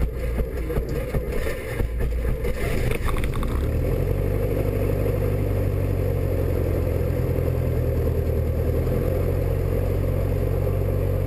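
A small propeller plane's engine drones loudly and steadily.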